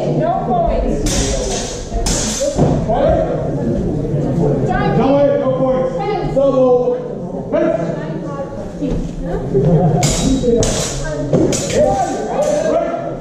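Wooden practice swords clack together.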